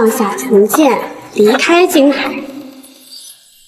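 A young woman speaks close by with animation.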